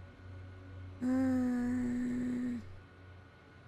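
A young woman hums a long, drawn-out note.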